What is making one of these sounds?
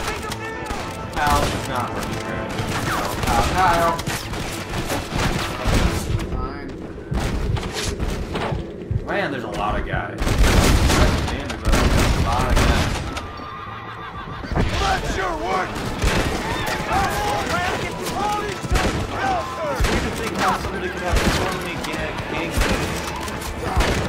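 Rifle shots crack repeatedly.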